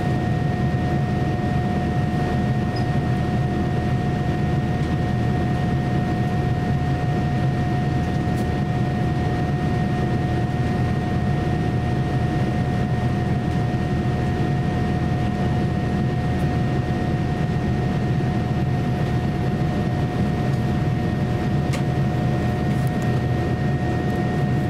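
A jet airliner's engines roar steadily inside the cabin, with a constant high whine.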